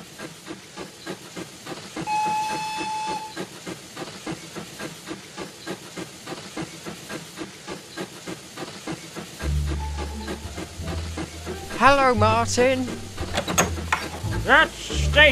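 A toy train's wheels click rhythmically over rail joints.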